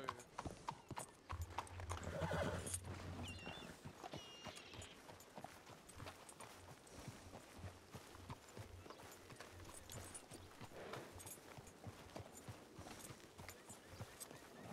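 A horse's hooves clop slowly on a dirt road.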